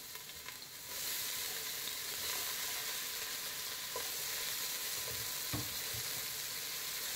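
Chopped onion sizzles loudly in hot oil.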